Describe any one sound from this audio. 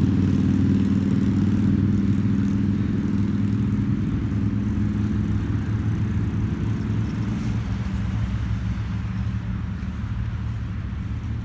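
Wheels rumble steadily over a paved path.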